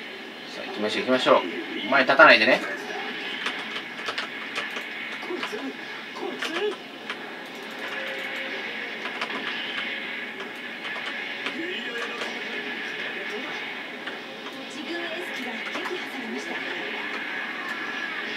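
Gunfire rattles from a video game through a loudspeaker.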